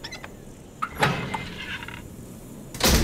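A metal gate creaks open.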